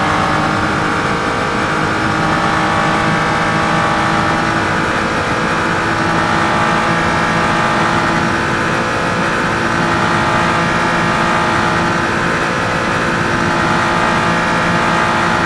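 Tyres hum on the track surface.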